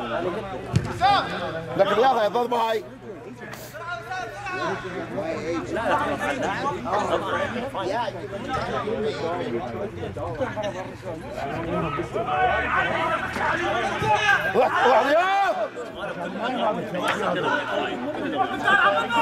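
Several men shout and call out across an outdoor pitch.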